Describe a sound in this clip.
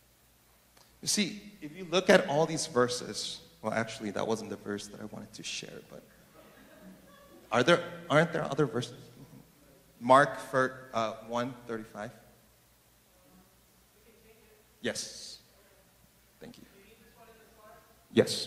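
A man speaks with animation into a microphone in a large echoing room.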